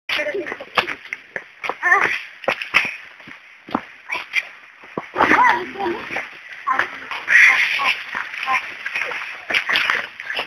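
Young women laugh and shout nearby outdoors.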